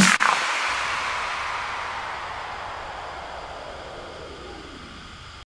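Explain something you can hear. A waterfall rushes and splashes steadily nearby.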